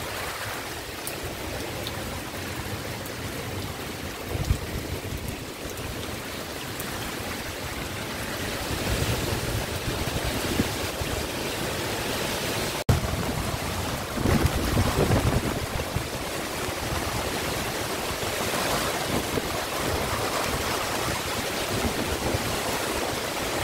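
Leaves rustle and thrash in the wind.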